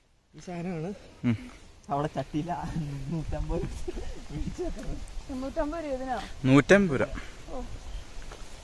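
Young people talk and laugh close by.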